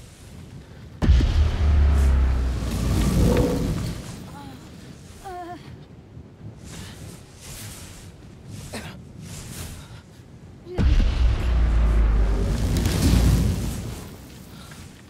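A deep energy blast roars and rumbles loudly.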